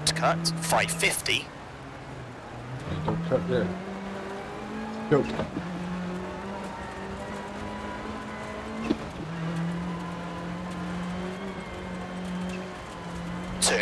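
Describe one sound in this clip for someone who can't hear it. A rally car engine hums steadily and climbs through the gears.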